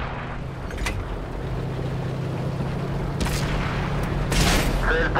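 A tank engine rumbles and clanks steadily as the tank drives.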